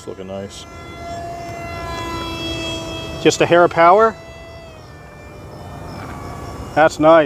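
A propeller plane drones overhead as it flies by.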